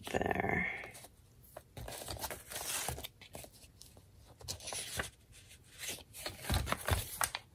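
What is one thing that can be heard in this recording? Paper sheets rustle and slide as hands shuffle them.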